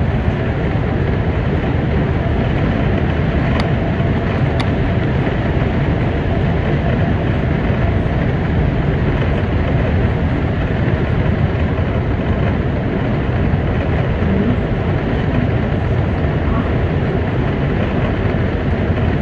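A car drives steadily along a highway with a low road rumble and tyre noise from inside the cabin.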